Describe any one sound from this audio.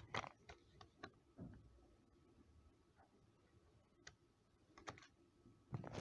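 A paper envelope rustles and crinkles close by.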